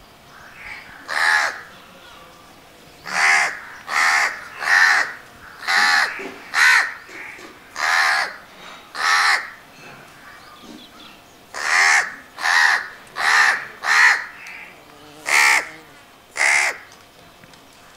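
A crow caws loudly and harshly, again and again, close by.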